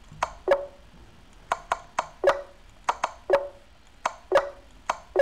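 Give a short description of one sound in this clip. Chess move sounds click in quick pairs.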